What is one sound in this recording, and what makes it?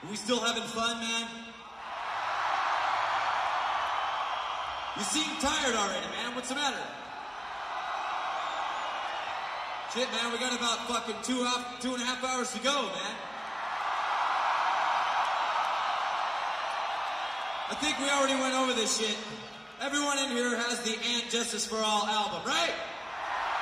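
A man shouts to a crowd through a microphone and loudspeakers in a large echoing hall.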